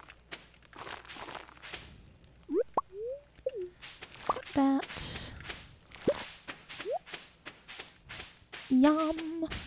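Short game chimes pop as crops are picked up.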